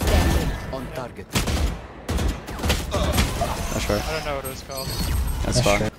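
Rapid gunshots ring out.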